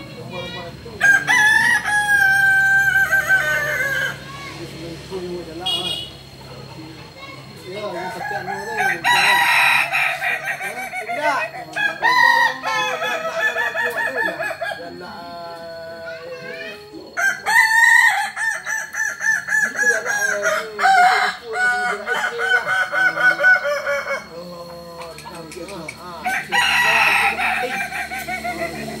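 Several roosters crow loudly nearby, one after another.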